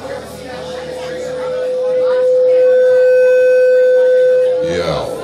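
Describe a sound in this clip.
An electric guitar holds a long, loud ringing note that swells and then breaks off.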